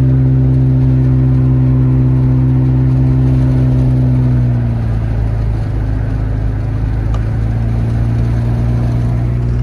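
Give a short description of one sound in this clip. Tyres rumble on the road.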